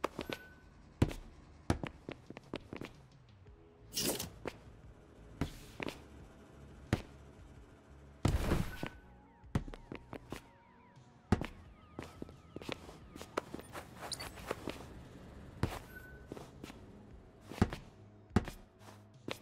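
Heavy landings thump now and then.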